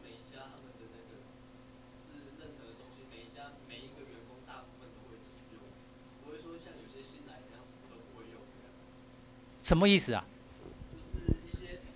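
A man speaks softly with a seated student nearby.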